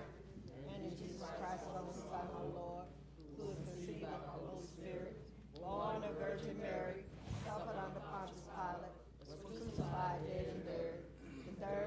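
A group of men and women recite together in unison, heard through microphones in an echoing hall.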